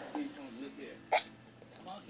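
A teenage boy sips from a cup.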